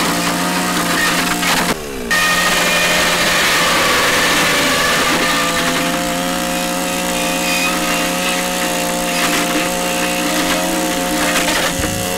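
A chainsaw chain cuts through hard plastic with a grinding rasp.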